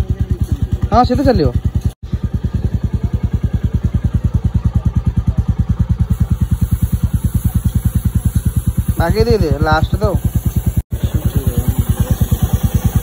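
A motorcycle engine idles with a steady, rapid thumping.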